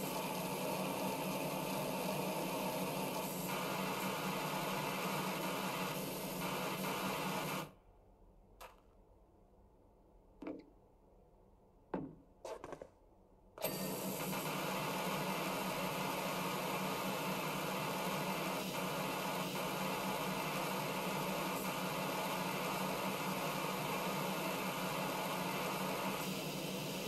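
A pressure washer sprays water in a loud, steady hiss, stops for a few seconds, then starts again.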